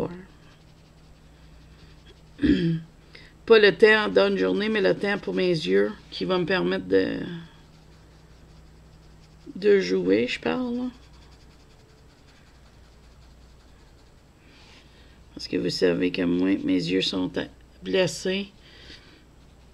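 A colored pencil scratches softly on paper.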